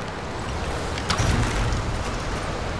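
A bowstring twangs as an arrow is loosed.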